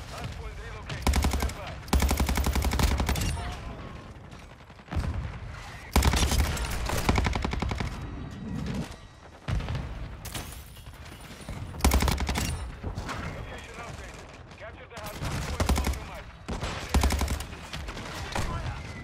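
Automatic rifle fire bursts in rapid, loud volleys.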